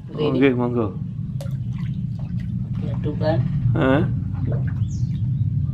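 Water splashes as a hand stirs it in a basin.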